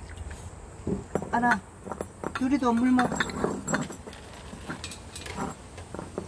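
A ceramic bowl scrapes and clinks on the ground.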